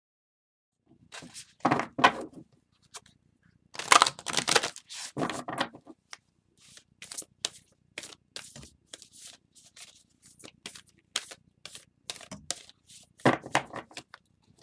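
Cards riffle and slap together as a deck is shuffled by hand.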